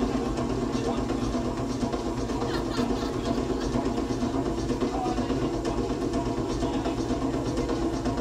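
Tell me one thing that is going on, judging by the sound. Music plays loudly through speakers.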